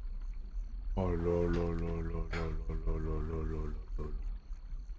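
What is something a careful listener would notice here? A man talks loudly into a microphone.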